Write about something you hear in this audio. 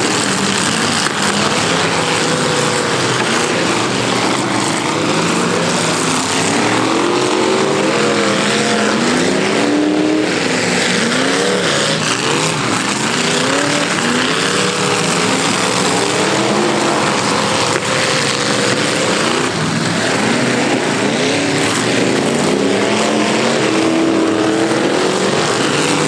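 Car engines roar and rev loudly outdoors.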